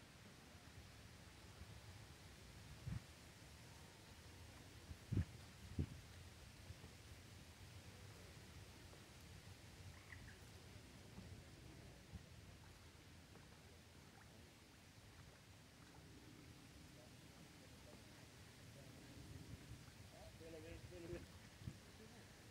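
Oars splash softly in calm water.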